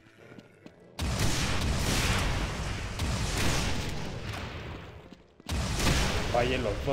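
A heavy gun fires rapid bursts of loud shots.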